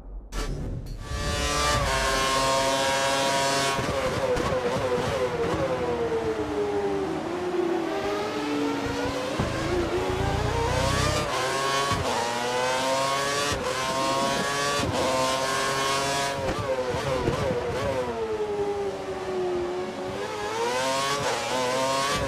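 A racing car engine screams close by, rising and falling in pitch as it shifts gears.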